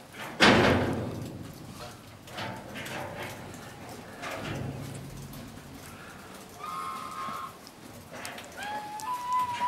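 A bear bumps and scrapes against a wooden wall.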